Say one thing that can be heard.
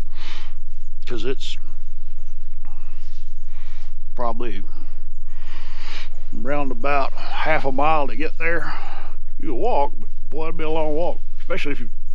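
A middle-aged man speaks calmly and close up.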